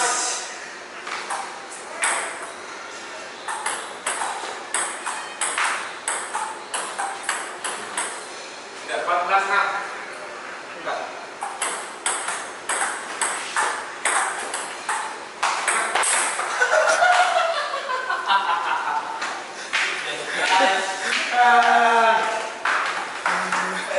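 A ping pong ball clicks back and forth off paddles and a table.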